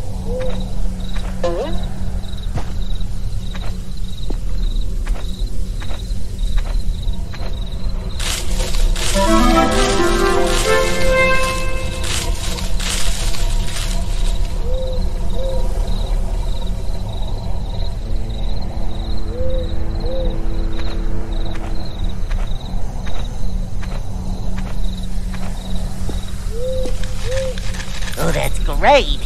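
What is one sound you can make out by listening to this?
Footsteps tap steadily at a walking pace.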